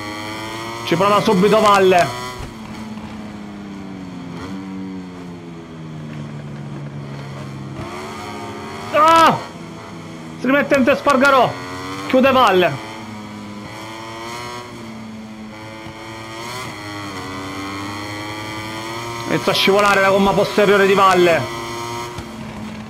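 A motorcycle engine drones steadily at high speed.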